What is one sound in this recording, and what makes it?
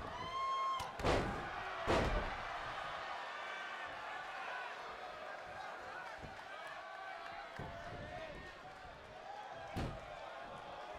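Heavy bodies slam onto a wrestling mat with loud thuds.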